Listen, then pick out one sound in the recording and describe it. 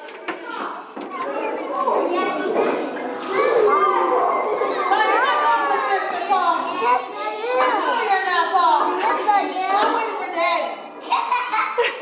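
Many young children talk and shout at once, echoing in a hard room.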